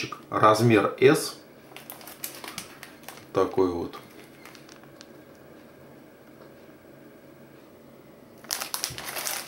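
A plastic package crinkles and rustles.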